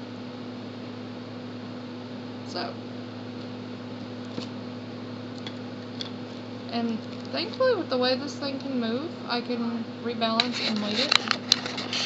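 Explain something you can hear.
A phone knocks and rattles as a hand handles it.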